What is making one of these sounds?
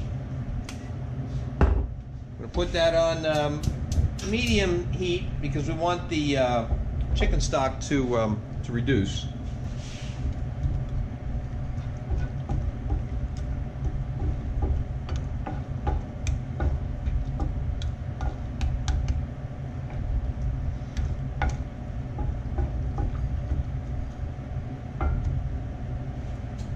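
Liquid simmers and bubbles in a pan.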